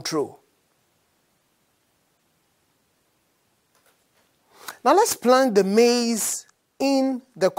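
A man speaks clearly and calmly into a microphone.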